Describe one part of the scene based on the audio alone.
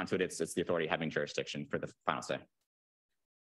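A young man speaks steadily into a microphone.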